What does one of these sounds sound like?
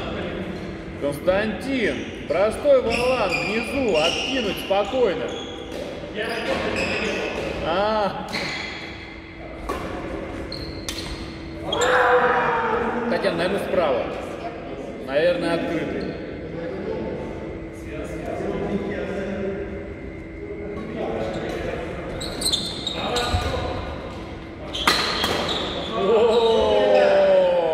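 Sports shoes squeak sharply on a hard court floor.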